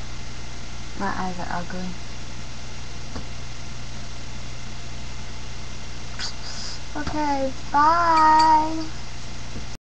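A young girl speaks close by in a playful, drawn-out voice.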